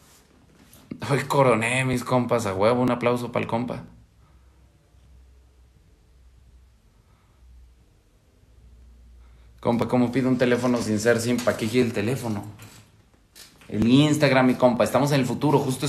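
A young man speaks calmly and close to the microphone.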